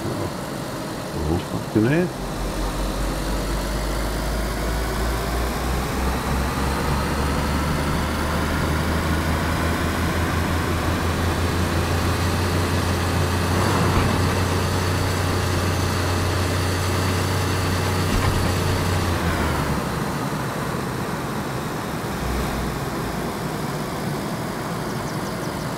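A car engine revs up and drones steadily as the car speeds along a road.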